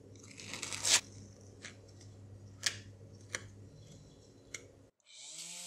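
A putty knife taps sharply against a surface.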